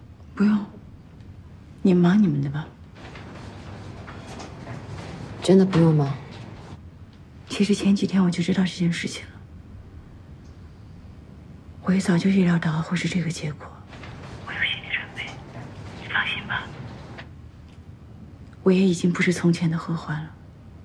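A young woman speaks softly into a phone.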